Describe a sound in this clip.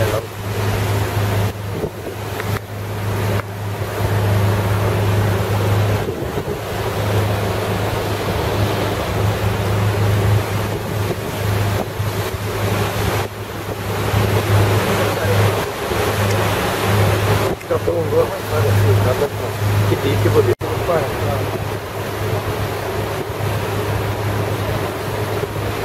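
A boat motor hums steadily.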